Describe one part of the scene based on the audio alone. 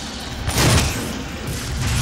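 A fireball bursts with a roar.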